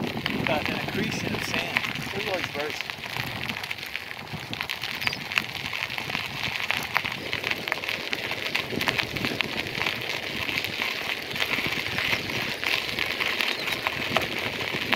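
Wind blows hard and buffets the microphone outdoors.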